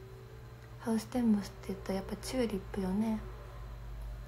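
A young woman talks softly and closely into a microphone.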